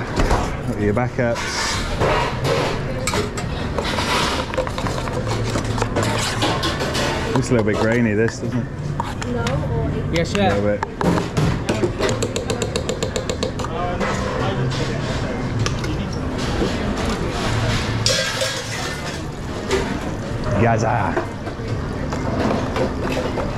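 A metal spoon scrapes and clinks against steel pans.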